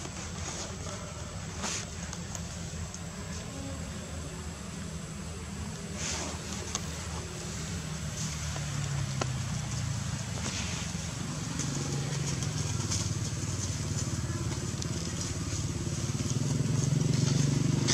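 Dry leaves rustle and crackle as monkeys move about.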